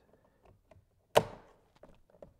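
A plastic clip snaps into place with a sharp click.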